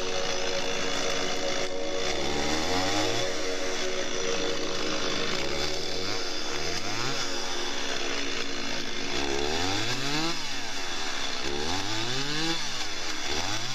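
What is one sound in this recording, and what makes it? A chainsaw engine runs loudly and revs up and down.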